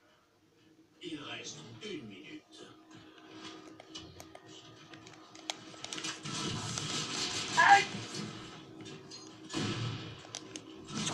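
Gunshots from a video game crackle through a television speaker.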